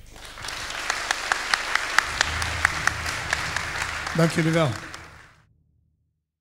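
An audience claps and applauds in a large hall, then the applause fades away.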